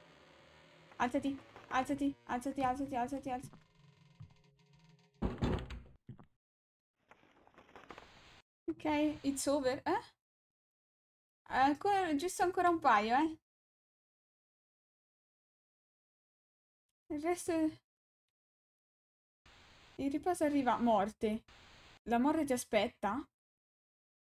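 A young woman talks with animation through a headset microphone.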